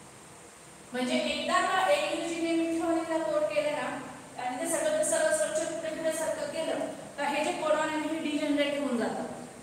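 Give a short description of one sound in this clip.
A young woman speaks with animation into a nearby microphone.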